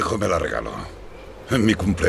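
A man bites into an apple slice.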